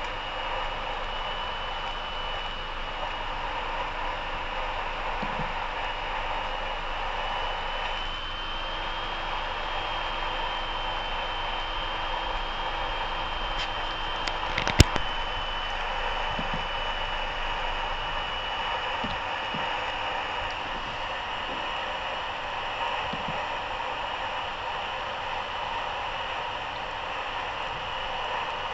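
Tyres roar on a snowy road.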